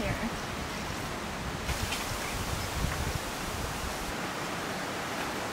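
Bamboo stalks creak and knock as a hand pushes them aside.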